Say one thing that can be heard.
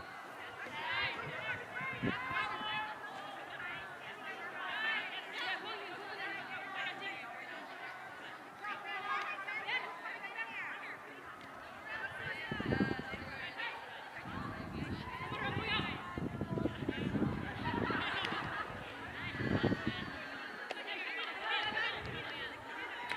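Young women shout and call out to each other across an open field outdoors.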